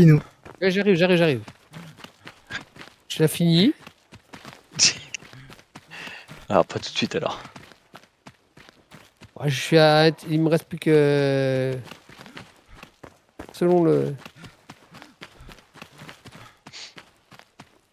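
Footsteps thud on earth and grass as a figure runs.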